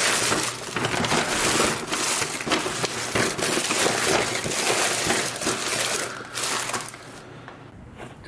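A paper bag crinkles and rustles close by.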